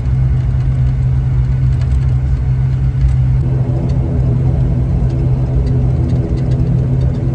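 Wheels rumble and thump over the runway.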